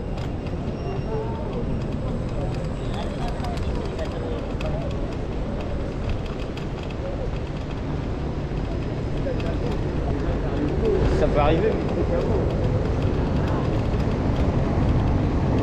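Men and women talk in the distance outdoors.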